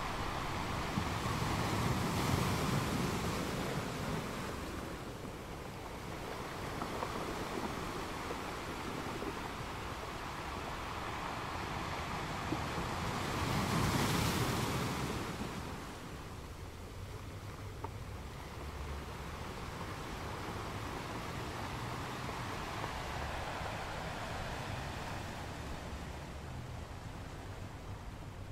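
Ocean waves roll in and crash on rocks, surging and receding.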